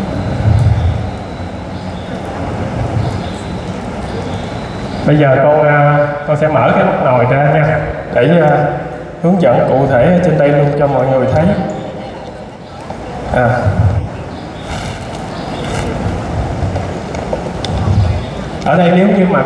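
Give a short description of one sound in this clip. A man speaks through a loudspeaker in a large echoing hall, lecturing with animation.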